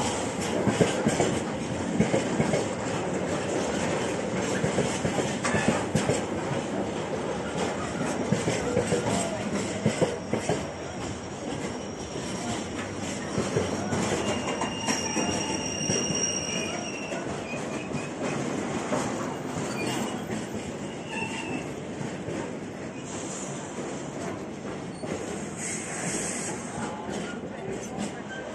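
Freight wagons rumble and clatter past close by on the rails.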